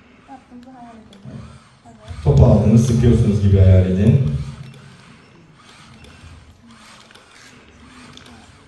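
A man speaks into a microphone through a loudspeaker in a large hall.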